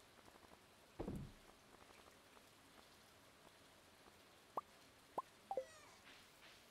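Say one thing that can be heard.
Short electronic blips pop now and then.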